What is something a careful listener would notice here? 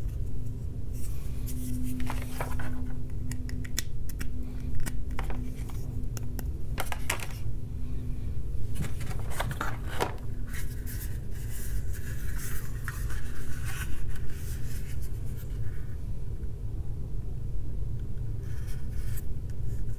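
Hands fumble and tap against hard plastic objects.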